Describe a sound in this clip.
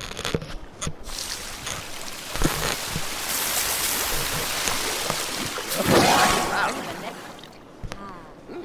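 Water in a hot tub bubbles and splashes loudly.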